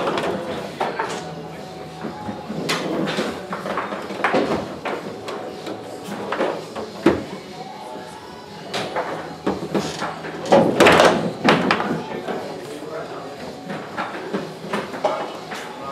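Table football rods rattle and spin as players twist them.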